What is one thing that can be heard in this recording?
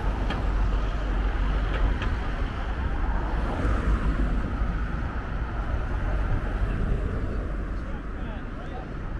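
Wind blusters steadily across the microphone outdoors.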